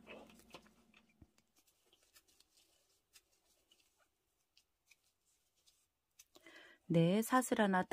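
A crochet hook softly clicks and scrapes as yarn rustles through it.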